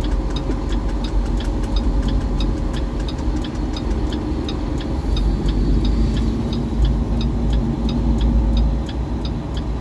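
Tyres crunch over a gravel road.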